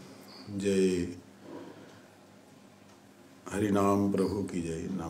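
An elderly man chants slowly into a microphone.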